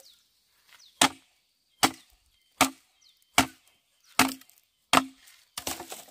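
A machete chops into a bamboo pole.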